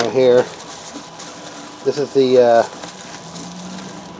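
Bubble wrap rustles as it is unwrapped.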